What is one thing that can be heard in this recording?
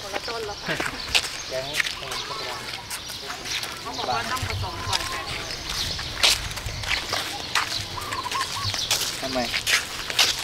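Sandals slap and scuff on pavement as several people walk outdoors.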